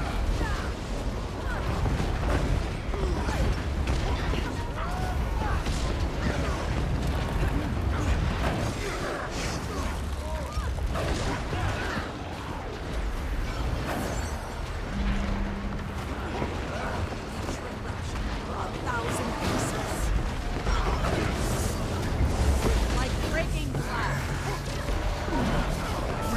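Game spell effects and weapon hits crash and crackle without a break.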